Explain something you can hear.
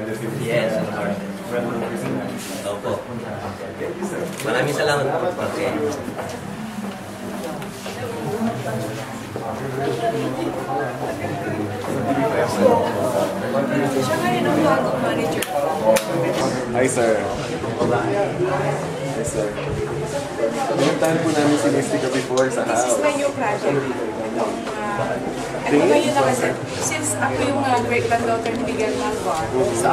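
Many men and women chatter all around.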